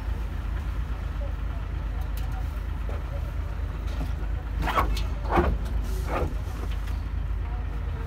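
Metal parts knock and scrape.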